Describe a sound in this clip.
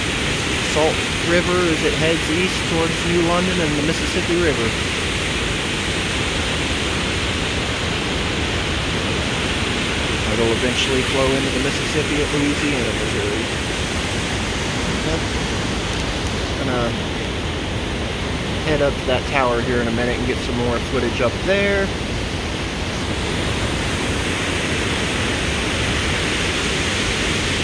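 Rushing water roars and churns steadily outdoors.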